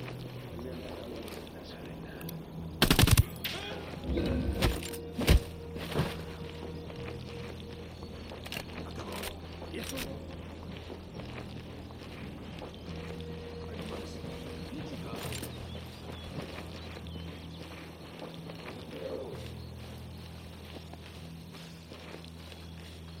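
Footsteps crunch steadily on dirt.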